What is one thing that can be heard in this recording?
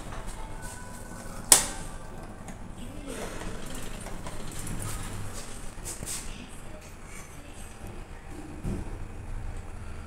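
A lift hums steadily as it moves.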